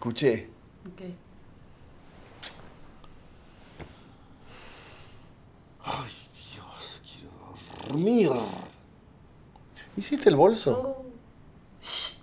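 A woman murmurs softly and drowsily close by.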